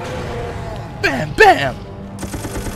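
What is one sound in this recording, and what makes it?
A monster lets out a loud, growling roar.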